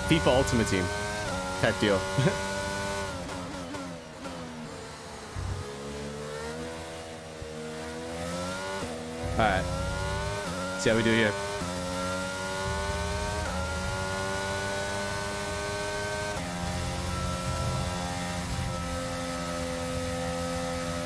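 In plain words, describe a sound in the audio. A racing car engine roars, rising and falling in pitch as the gears shift.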